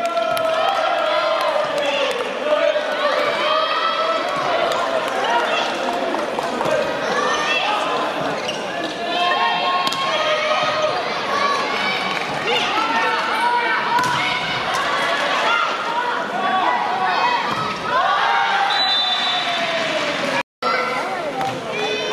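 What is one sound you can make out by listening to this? Young women players shout on court.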